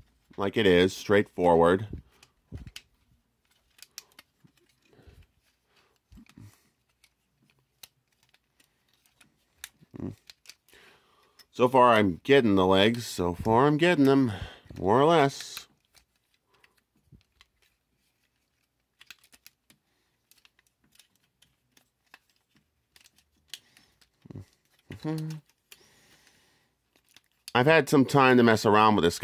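Plastic toy parts click and snap as hands move them.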